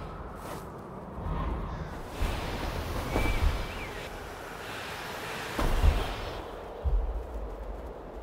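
Footsteps rustle through dense leafy undergrowth.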